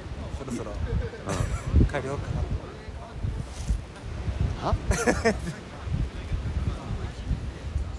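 A young man talks close to the microphone with animation.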